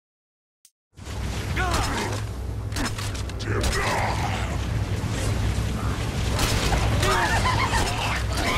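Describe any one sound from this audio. Explosions boom with a deep rumble.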